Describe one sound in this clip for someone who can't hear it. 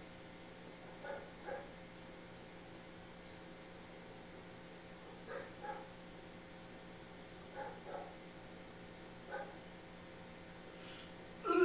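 A man blows short, paired hooting notes through cupped hands, close by.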